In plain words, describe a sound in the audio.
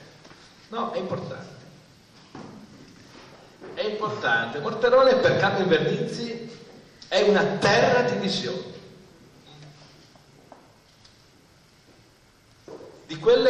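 An elderly man speaks with animation into a microphone in an echoing room.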